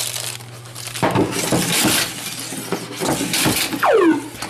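A puck slides along a wooden lane and knocks into pins.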